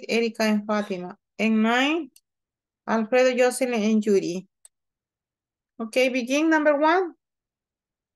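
A woman speaks clearly over an online call, in short phrases with pauses.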